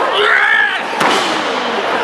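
A body slams onto the ring mat with a heavy thud.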